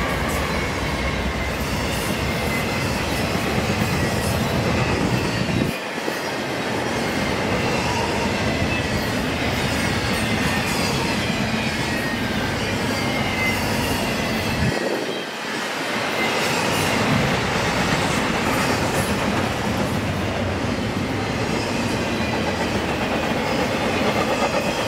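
Freight cars clatter and squeal over the rails.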